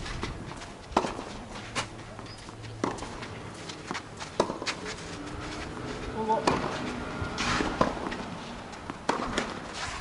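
Tennis balls are struck by rackets with sharp, repeated pops.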